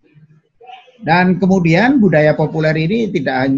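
A middle-aged man speaks slowly and drawn-out, close to a microphone.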